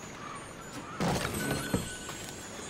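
A wooden chest creaks open with a rattle of coins.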